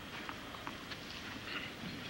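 A tennis ball bounces on a clay court.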